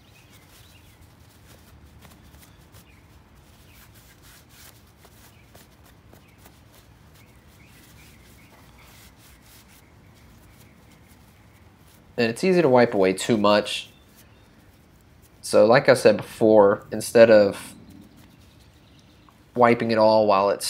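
A paper tissue rustles as it rubs on metal.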